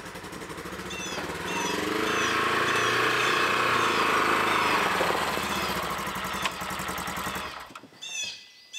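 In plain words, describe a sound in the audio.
A utility vehicle engine idles and then revs as the vehicle drives out.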